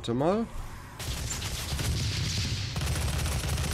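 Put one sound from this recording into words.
Explosions roar and crackle.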